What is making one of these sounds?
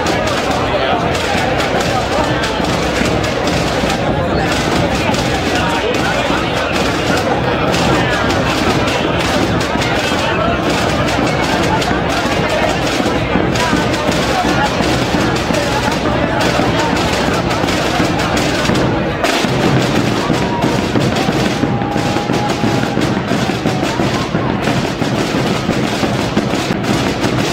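A large crowd chatters loudly outdoors.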